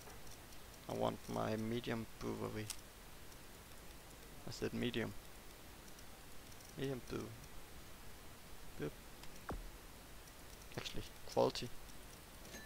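A young man speaks casually and briefly into a close microphone, in short bursts.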